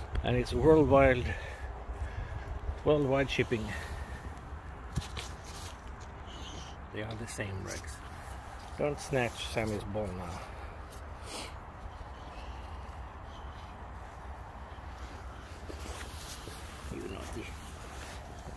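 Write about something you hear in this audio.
A dog whines and grumbles close by.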